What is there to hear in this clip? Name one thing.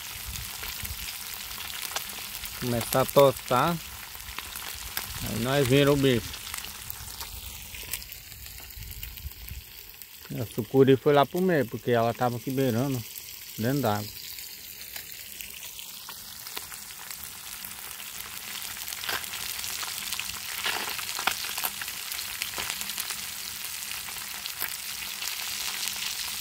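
Oil sizzles and crackles steadily in a frying pan.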